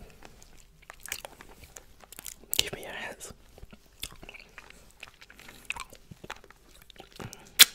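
A lollipop clicks and rattles against teeth close to a microphone.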